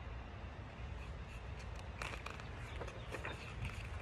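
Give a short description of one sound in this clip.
A paper page turns.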